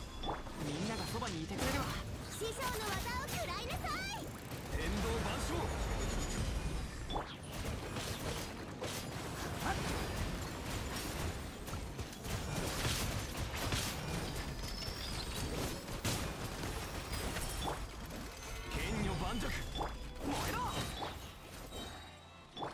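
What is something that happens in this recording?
Sword slashes and magic blasts crash and whoosh in quick succession.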